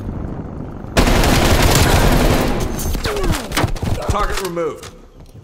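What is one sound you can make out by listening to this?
Gunfire bursts loudly in rapid shots.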